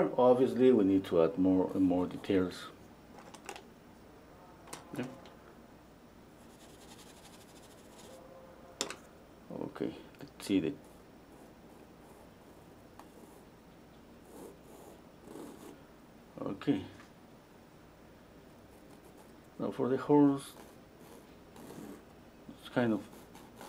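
A stick of charcoal scratches softly across a canvas.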